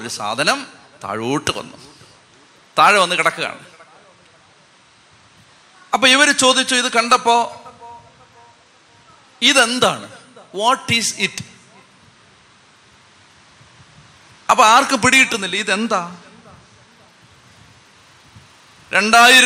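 A man preaches with animation into a microphone, in bursts with pauses, echoing in a large hall.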